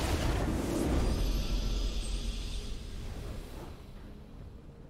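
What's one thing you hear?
A bright victory chime from a video game rings out and dies away.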